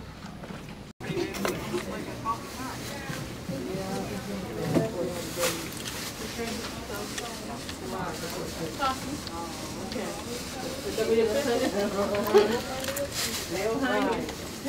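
A woman talks.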